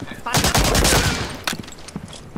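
Gunshots fire in a rapid burst, booming in a large echoing hall.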